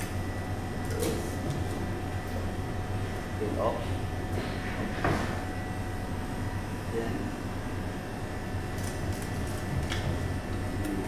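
A knife thuds against a cutting board.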